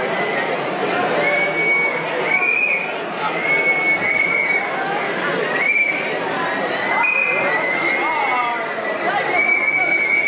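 A large audience chatters in a big echoing hall.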